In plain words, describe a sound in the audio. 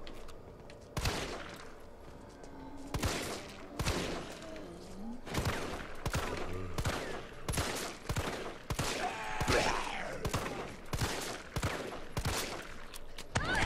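Pistol shots ring out sharply, one after another, with a short echo.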